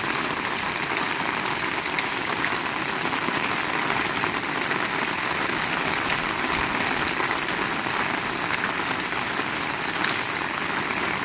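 Rain splashes on a flooded road.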